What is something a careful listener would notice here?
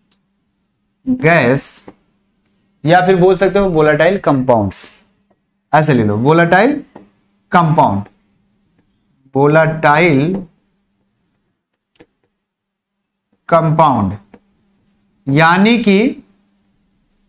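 A young man speaks calmly and clearly into a close microphone, in short phrases with pauses.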